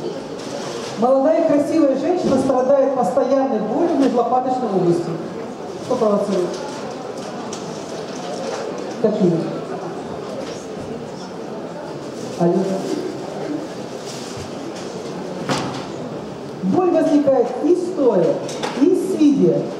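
A middle-aged woman talks calmly close by, with pauses.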